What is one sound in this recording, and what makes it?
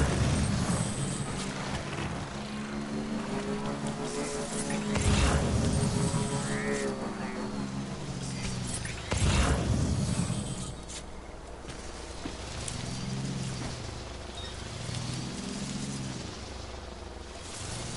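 An electric motorbike engine hums steadily and rises and falls in pitch.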